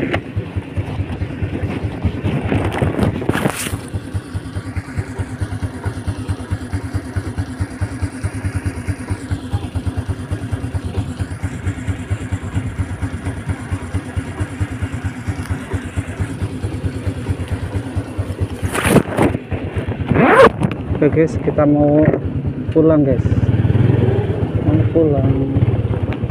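A scooter engine idles with a steady rattling putter close by.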